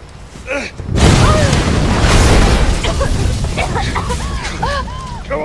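A loud rumbling roar bursts out and slowly fades.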